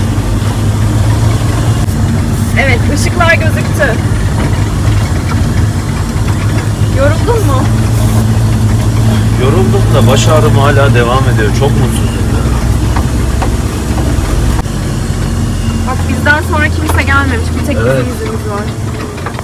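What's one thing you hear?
A tractor engine rumbles steadily inside the cab.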